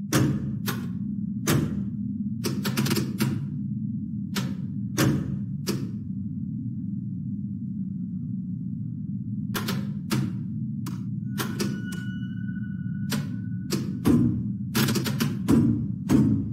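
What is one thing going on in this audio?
Short menu clicks sound again and again.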